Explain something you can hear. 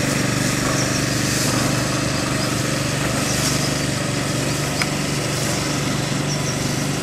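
Water sprays hard from a pressurized hose onto gravel.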